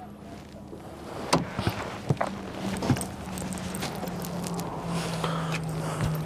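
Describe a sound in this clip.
A driver climbs out of a race car, with knocks and rustling.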